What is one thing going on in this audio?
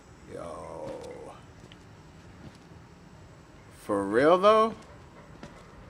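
A young man exclaims with animation into a headset microphone.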